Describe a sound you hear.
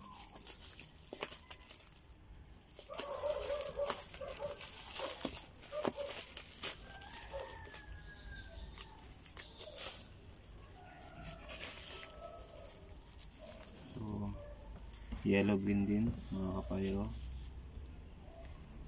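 Plastic wrap crinkles and rustles as hands handle it.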